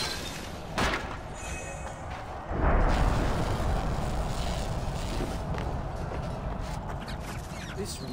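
Torches crackle and hiss with flame.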